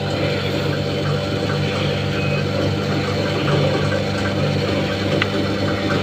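Fuel gushes into a plastic bottle.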